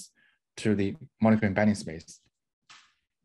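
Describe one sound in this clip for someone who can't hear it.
A young man speaks calmly into a microphone, heard as an online talk.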